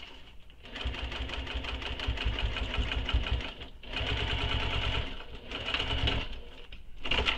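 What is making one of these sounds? A sewing machine runs in quick bursts of stitching.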